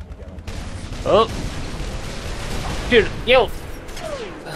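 A plasma gun fires sharp bursts of shots.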